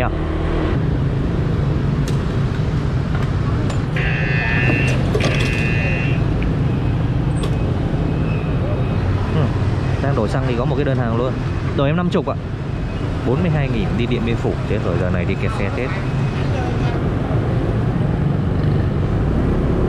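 A motorbike engine idles with a steady low rumble.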